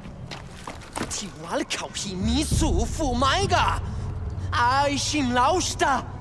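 A young man shouts angrily and pleads up close.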